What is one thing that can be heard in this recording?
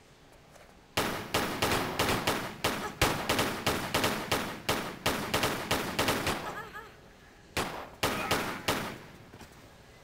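Pistols fire in rapid bursts of gunshots.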